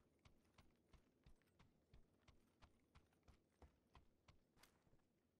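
Quick footsteps run over hard stone.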